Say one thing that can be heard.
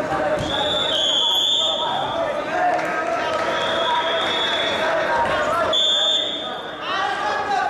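A referee blows a whistle in short sharp blasts.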